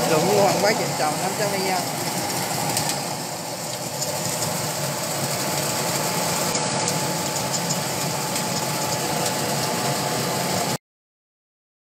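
A machine motor hums and rattles steadily.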